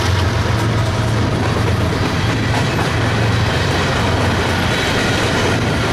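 Freight cars clatter and squeal along the rails.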